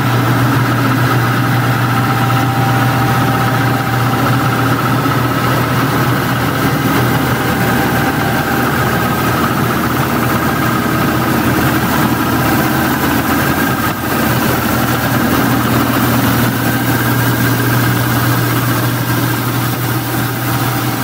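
A suction machine roars steadily.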